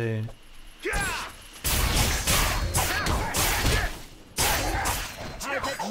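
Sword blows strike and clash in a fight.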